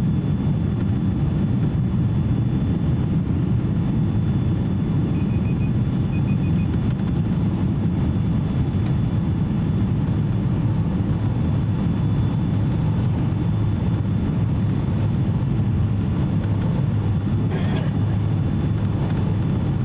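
A jet airliner's engines roar steadily, heard from inside the cabin.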